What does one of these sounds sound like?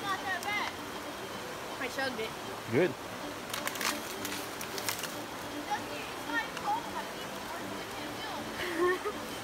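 Water in a shallow creek flows and ripples gently.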